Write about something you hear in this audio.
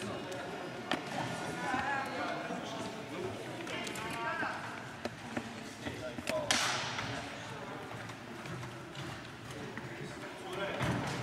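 Table tennis balls click on tables and paddles in a large echoing hall.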